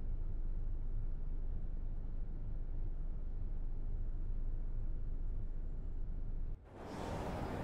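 A train's motor hums low and steady.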